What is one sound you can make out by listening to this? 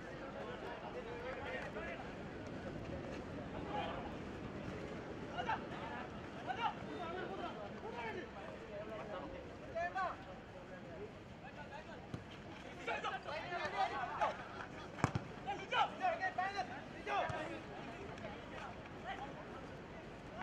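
A large crowd murmurs and cheers outdoors.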